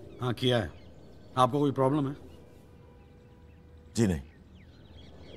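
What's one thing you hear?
A man speaks in short, tense phrases close by.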